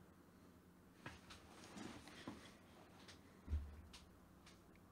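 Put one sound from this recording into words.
Clothing rustles close to a microphone.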